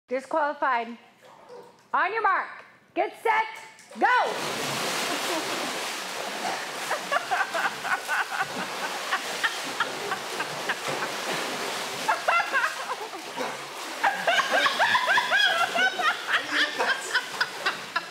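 A young woman squeals and laughs.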